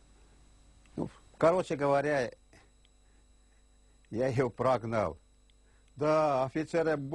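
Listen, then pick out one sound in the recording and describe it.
An elderly man speaks slowly and haltingly, close to a microphone.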